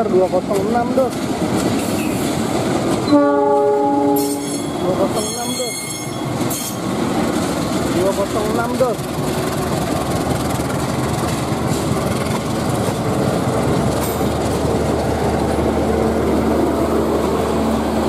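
Train wheels clatter and rumble along the rails.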